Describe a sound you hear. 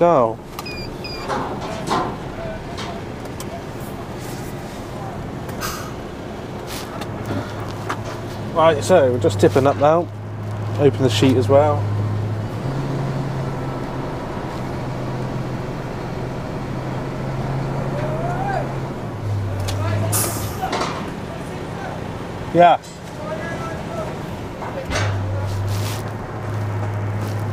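A diesel engine idles with a steady low hum.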